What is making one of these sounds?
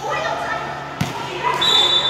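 A volleyball is struck with a sharp smack.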